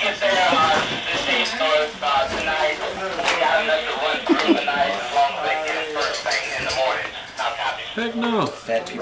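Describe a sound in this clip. Another young man talks and answers nearby.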